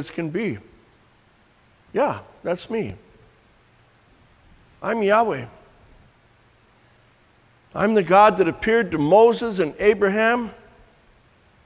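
An elderly man speaks calmly close by, in short bursts with pauses.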